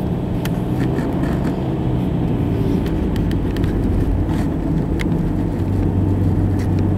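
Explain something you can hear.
A car engine rumbles steadily as the car drives along a road.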